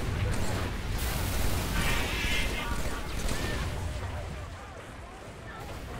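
Water splashes as a creature wades through it.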